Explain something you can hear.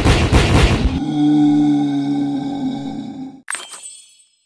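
A game's success chime rings out.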